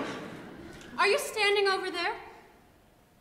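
A young woman sings a short, drawn-out phrase in a large hall.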